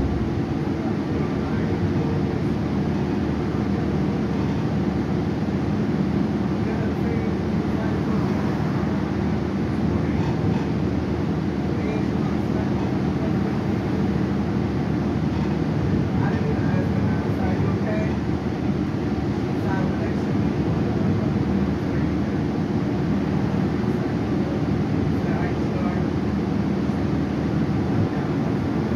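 Loose fittings inside the bus rattle and clatter over bumps.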